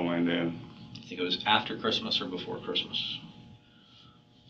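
A second man answers calmly.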